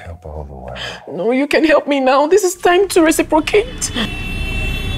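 A young woman speaks with animation up close.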